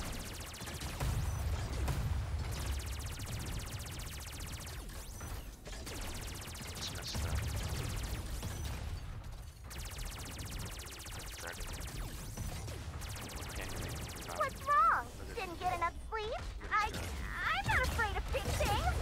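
Jet thrusters roar in low rumbling bursts.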